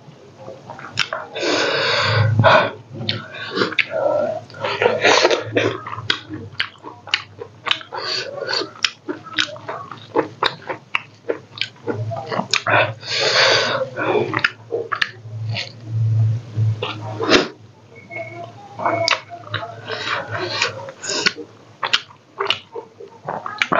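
Fingers squelch through wet rice and food in a bowl.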